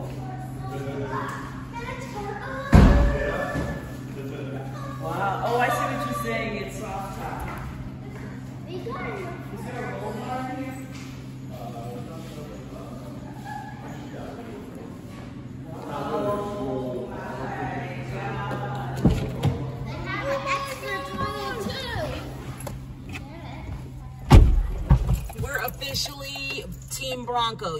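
A young child talks close by.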